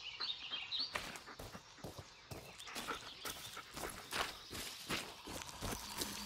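Footsteps run quickly over a dirt forest floor.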